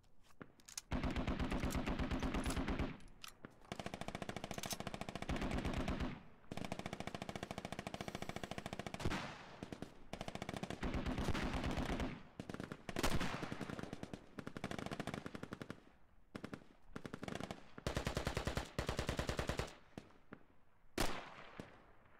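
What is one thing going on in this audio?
A rifle fires in rapid automatic bursts close by.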